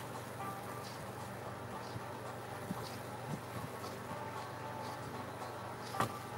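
A paintbrush dabs and brushes softly against a canvas.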